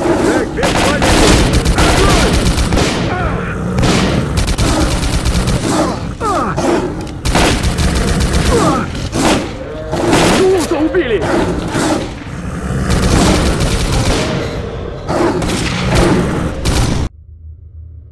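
Gunshots fire rapidly and echo in a tunnel.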